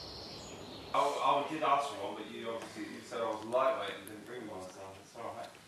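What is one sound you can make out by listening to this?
A young man talks nearby in a relaxed voice.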